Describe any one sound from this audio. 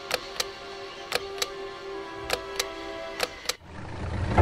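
Electronic keypad buttons beep as they are pressed.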